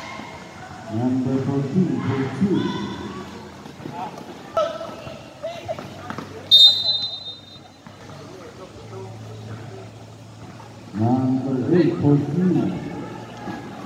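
Spectators shout and cheer loudly in an open, echoing hall.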